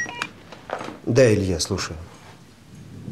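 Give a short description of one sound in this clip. A man speaks into a phone.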